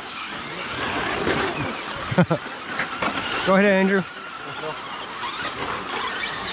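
Small tyres crunch and skid on loose dirt.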